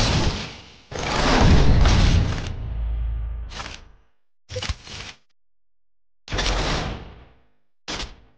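Game menu sound effects whoosh and chime in short bursts.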